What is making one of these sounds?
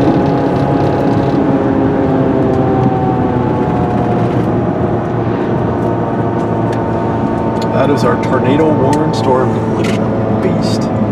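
A car drives along a road with a steady low rumble of tyres and engine.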